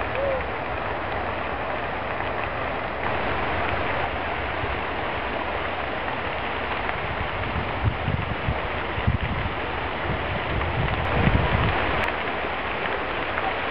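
A river rushes steadily close by.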